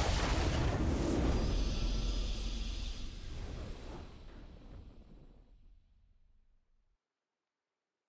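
Triumphant video game music swells and fades away.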